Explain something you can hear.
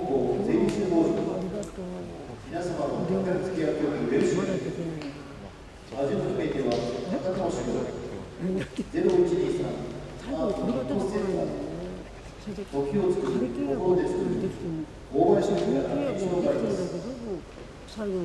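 A man calls out in a long, drawn-out chanting voice in a large hall.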